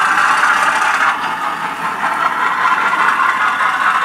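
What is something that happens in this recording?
A small model train rattles and clicks along its track.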